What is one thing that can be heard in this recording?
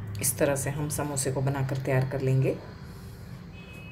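A pastry parcel is set down on a wooden board with a soft tap.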